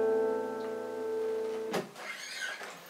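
An acoustic guitar chord rings out and is cut short.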